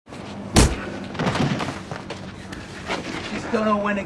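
A metal trash can bangs and clatters.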